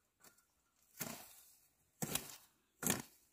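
A hoe chops into dry soil with dull thuds.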